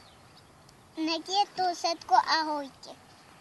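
A young boy speaks up close, with a high, lively voice.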